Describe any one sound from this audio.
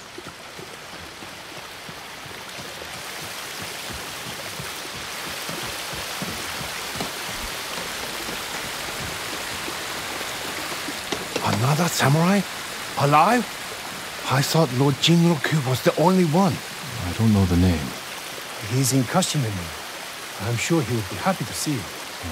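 Water rushes steadily nearby.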